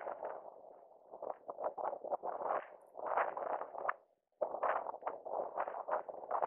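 Runners' footsteps patter on the road.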